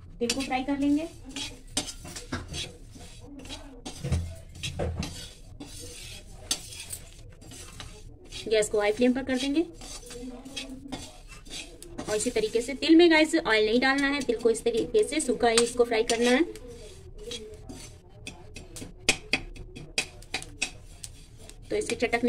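A metal ladle scrapes and stirs grains in a metal pan.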